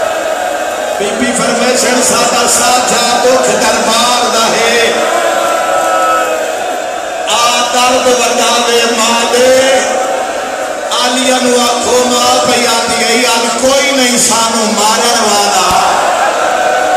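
A crowd of men chants along in unison.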